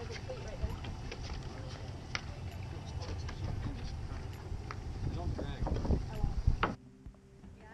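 A boat hull scrapes and thumps on a dock.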